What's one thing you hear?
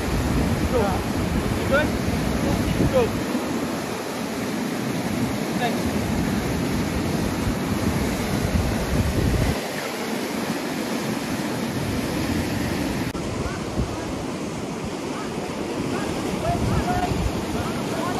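Rushing white water roars steadily nearby.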